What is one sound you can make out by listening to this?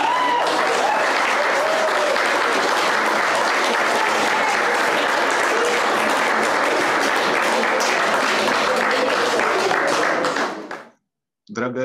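A crowd of diners chatters loudly in a large room.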